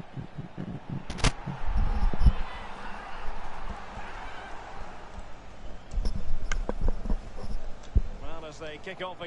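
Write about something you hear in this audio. A crowd cheers loudly in a stadium.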